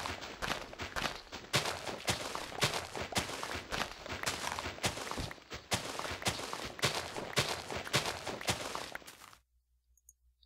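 A shovel digs rapidly into dirt and snow blocks with crunching scrapes.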